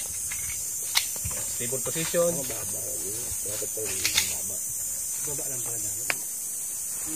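A handgun fires outdoors.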